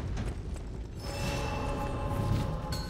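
A shimmering chime rings out.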